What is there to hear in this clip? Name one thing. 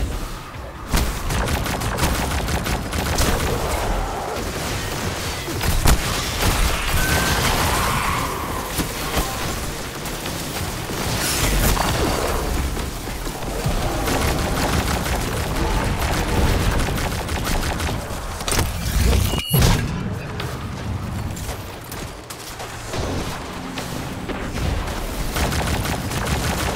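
Guns fire rapid bursts of shots.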